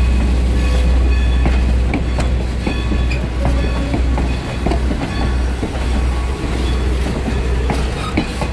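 Railway carriages roll past with a low rumble and clacking wheels.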